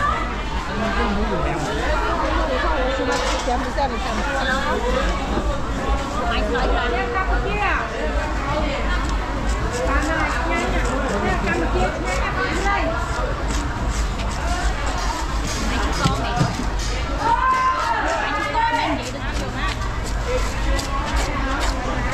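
Many people chatter nearby in a busy outdoor market.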